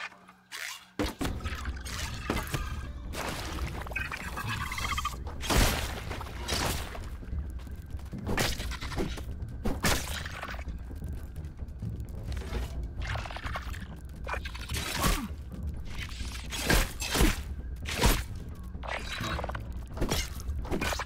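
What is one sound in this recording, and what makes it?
A spear strikes an insect creature with sharp thuds.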